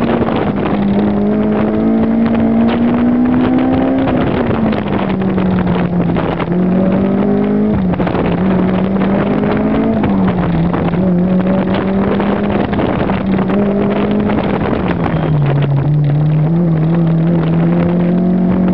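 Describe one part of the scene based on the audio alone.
A car engine revs loudly up and down close by.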